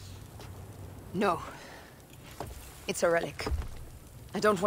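A young woman answers curtly, close by.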